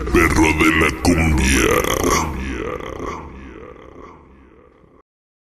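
Dance music plays loudly and then fades out.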